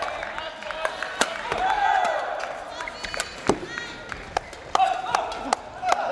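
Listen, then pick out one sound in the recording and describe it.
Rackets strike a shuttlecock in a quick rally.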